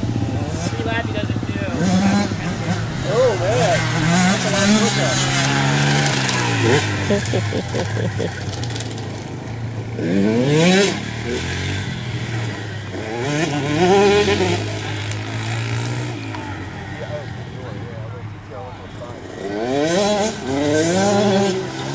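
Small dirt bike engines whine and rev up and down outdoors.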